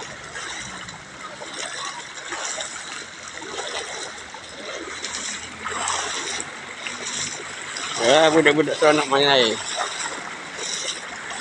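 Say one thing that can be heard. A pickup truck drives through floodwater, its wheels pushing water aside.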